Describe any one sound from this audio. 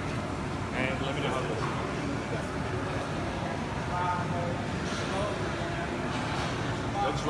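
A man talks nearby in a lively voice.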